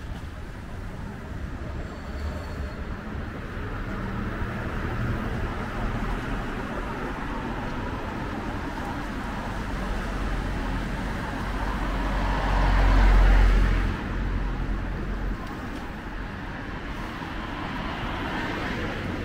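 Traffic rumbles steadily in the distance.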